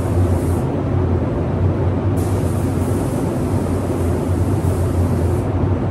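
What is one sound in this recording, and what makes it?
A spray gun hisses in bursts.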